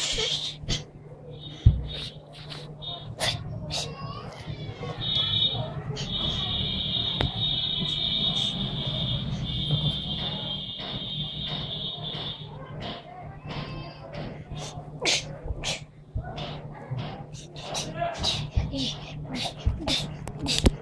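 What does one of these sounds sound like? A young boy sings and talks close by.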